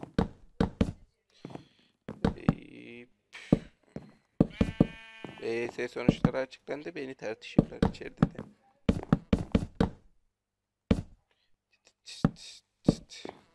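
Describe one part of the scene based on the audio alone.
Wooden blocks thud softly as they are placed one after another.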